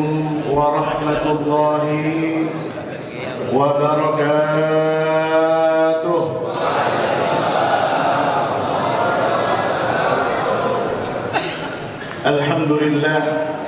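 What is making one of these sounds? A man chants in a long, sustained melody through a microphone and loudspeakers.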